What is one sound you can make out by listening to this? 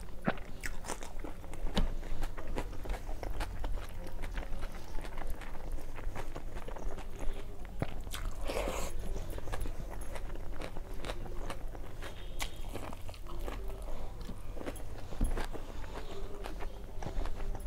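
A woman chews food with wet smacking sounds, close to a clip-on microphone.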